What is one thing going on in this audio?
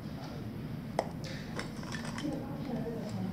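Pencils rattle in a pencil case.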